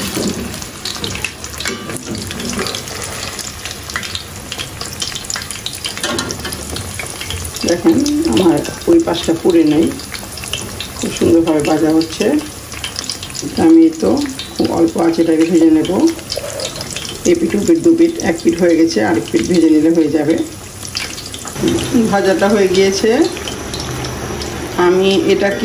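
Hot oil sizzles and crackles steadily in a frying pan.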